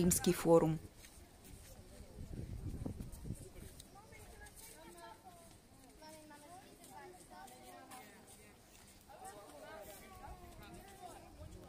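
A young woman talks quietly outdoors.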